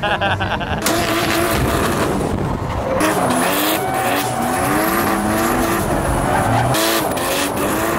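Car tyres screech on asphalt.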